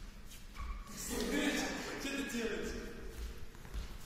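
Teenage boys talk briefly nearby in an echoing hall.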